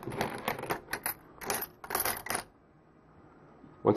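Coins drop into a plastic tube with a clink.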